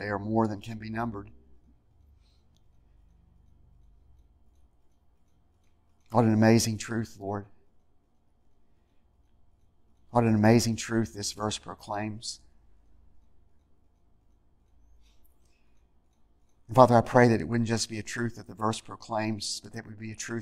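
An older man speaks slowly and earnestly through a microphone, with long pauses.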